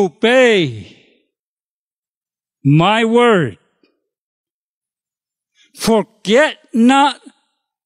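An elderly man preaches with animation through a microphone, in short phrases with pauses.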